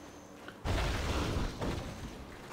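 A magic blast bursts with a deep rumbling whoosh.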